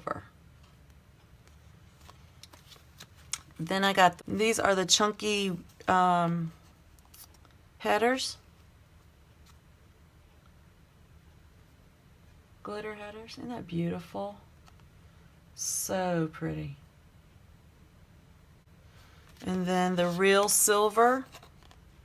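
Paper sticker sheets rustle softly as they are handled.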